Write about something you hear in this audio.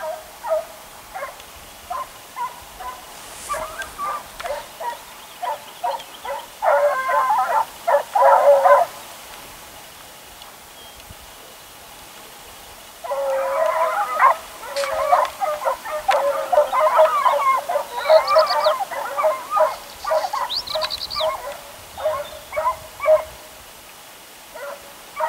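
Hunting hounds bay in the distance.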